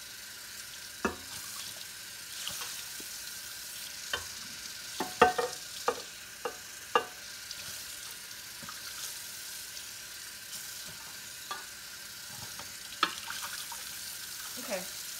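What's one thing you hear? Things clatter and knock on a hard counter.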